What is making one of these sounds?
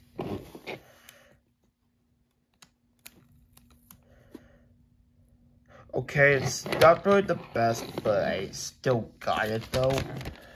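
Plastic toy parts click and tap as hands fit them together.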